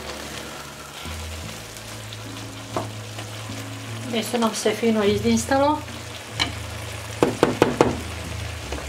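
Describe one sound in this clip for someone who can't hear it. A wooden spatula scrapes and stirs food in a frying pan.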